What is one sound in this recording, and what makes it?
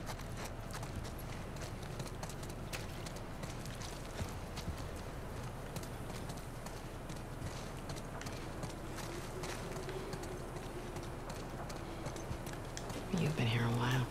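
Footsteps walk steadily over a hard floor and brick paving.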